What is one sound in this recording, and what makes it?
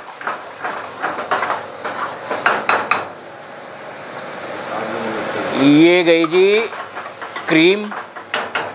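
Food sizzles in a hot wok.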